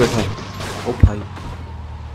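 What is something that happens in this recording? A van thuds against a curb.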